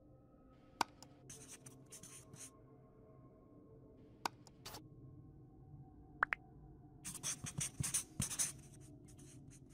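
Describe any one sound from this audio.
A marker squeaks and scratches in quick strokes.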